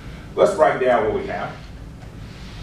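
A man speaks briefly in a lecture voice.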